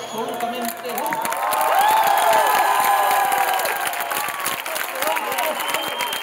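A crowd cheers and whoops loudly.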